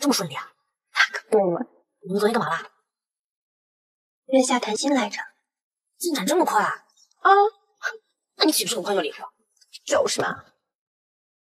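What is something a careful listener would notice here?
Another young woman answers cheerfully up close.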